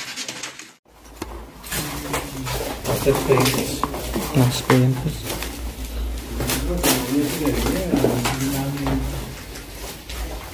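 Papers rustle and crunch underfoot.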